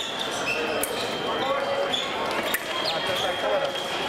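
Fencing blades clash and click.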